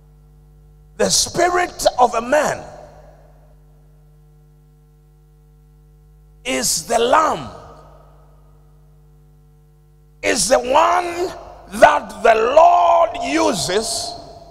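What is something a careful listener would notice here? A man preaches forcefully into a microphone, in bursts with long pauses, in a reverberant hall.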